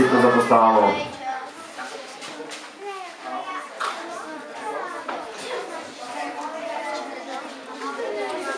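Children chatter and talk at once nearby.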